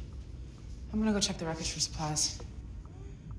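A woman speaks softly nearby.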